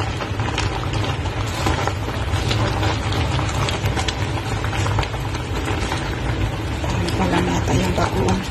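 Water boils and bubbles in a pot.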